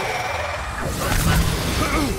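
A magic burst crackles and whooshes.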